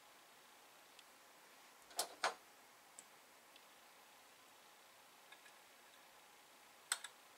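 Small metal parts click and tap against each other close by.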